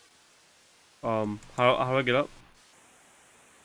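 A young man speaks briefly into a microphone, close up.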